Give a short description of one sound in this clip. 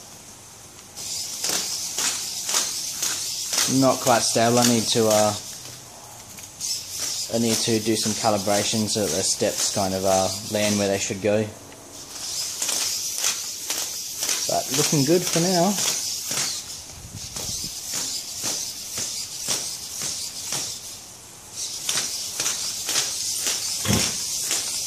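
Small servo motors whir in quick bursts.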